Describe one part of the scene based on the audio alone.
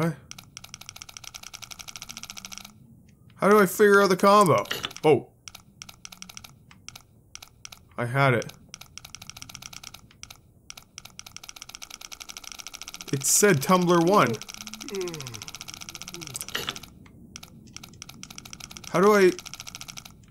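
A safe dial clicks rapidly as it turns.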